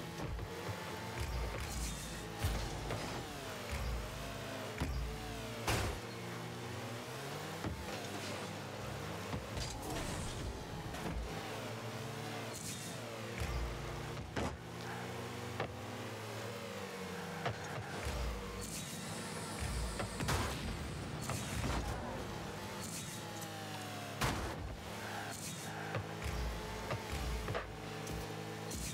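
Game car engines hum and whine steadily, rising and falling in pitch.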